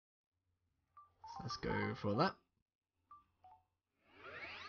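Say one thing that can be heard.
Short electronic menu beeps chirp.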